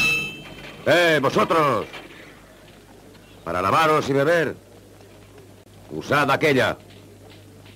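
A man shouts loudly and urgently.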